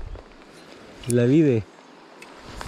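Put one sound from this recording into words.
A fishing reel winds.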